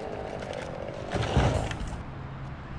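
A large tree crashes to the ground.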